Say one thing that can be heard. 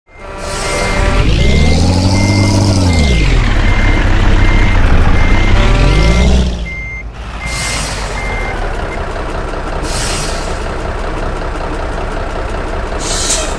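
A bus engine roars, revving up and down, then settles into a steady low rumble.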